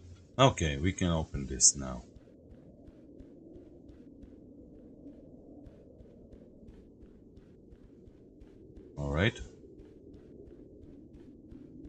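Footsteps run steadily over stone and earth.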